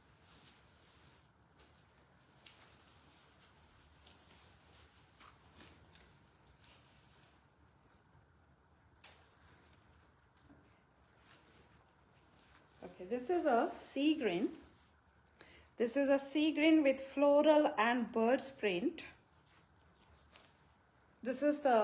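Fabric rustles as it is handled.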